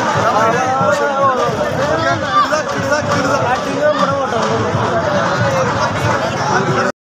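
A large crowd of men and women talks and shouts outdoors, close by.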